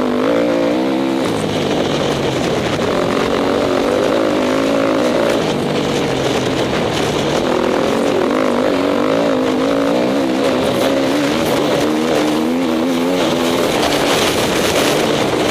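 Tyres crunch over a bumpy dirt track.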